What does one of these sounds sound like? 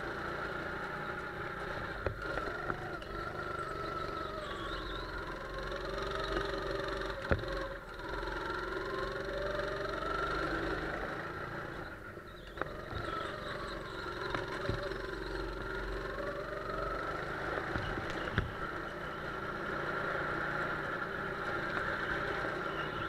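A go-kart engine whines steadily and rises and falls in pitch as it speeds up and slows.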